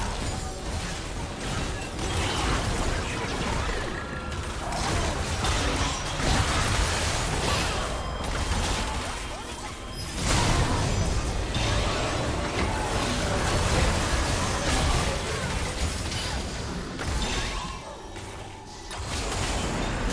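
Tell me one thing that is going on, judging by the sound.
Video game combat effects clash and burst rapidly.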